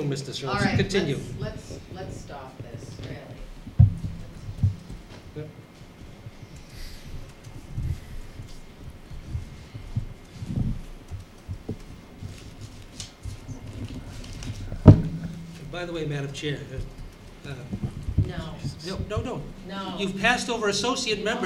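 Adults speak at a distance through microphones in a meeting room.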